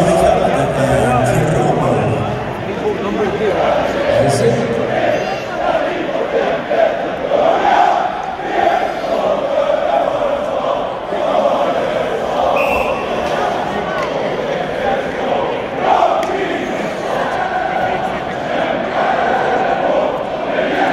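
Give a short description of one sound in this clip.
A large crowd sings and chants loudly in a big echoing arena.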